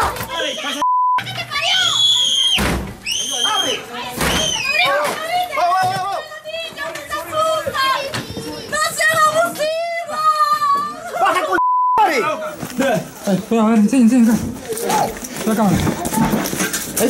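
Men shout urgently close by.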